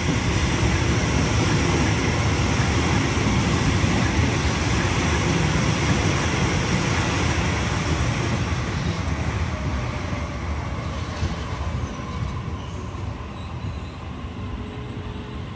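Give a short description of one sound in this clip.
An electric train rolls out close by with a deep rumble that slowly fades.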